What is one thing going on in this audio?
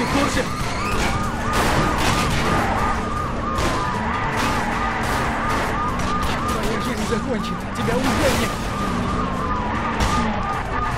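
A car engine roars at high revs.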